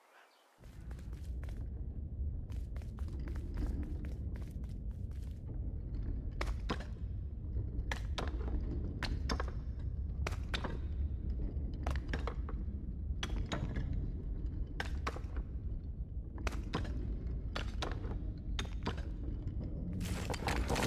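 Small footsteps tap on stone tiles.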